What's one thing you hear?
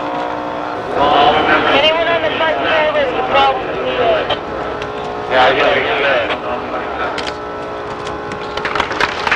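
A man speaks into a handheld microphone with animation, close by.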